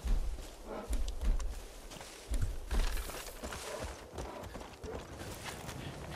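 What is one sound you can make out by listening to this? Footsteps crunch over forest ground.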